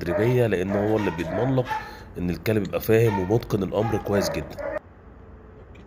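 A man speaks calmly to a dog close by.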